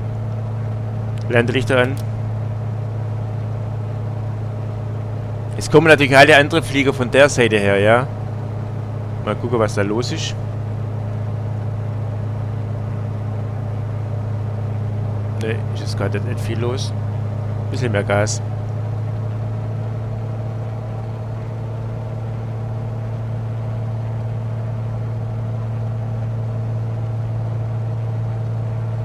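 The piston engine of a single-engine light aircraft drones steadily, heard from inside the cockpit.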